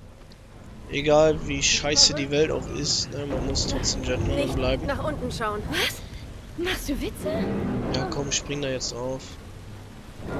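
A teenage girl speaks with animation.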